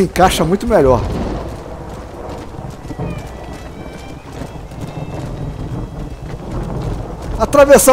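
Horse hooves thud steadily on a dirt path at a gallop.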